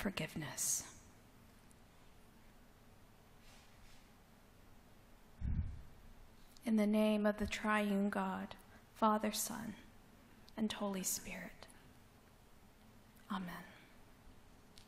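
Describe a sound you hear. A young woman speaks calmly into a microphone, pausing often, in an echoing hall.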